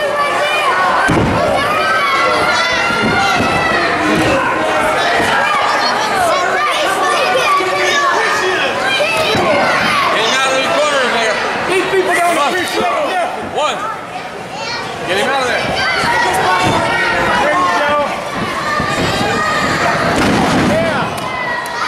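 A crowd cheers, chants and shouts throughout a large echoing hall.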